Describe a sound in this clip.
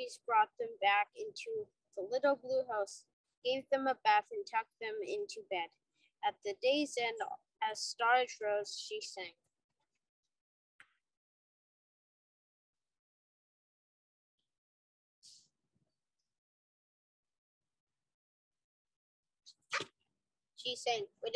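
A child reads a story aloud through an online call.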